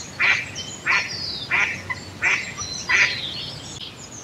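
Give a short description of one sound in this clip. Birds call repeatedly near the water outdoors.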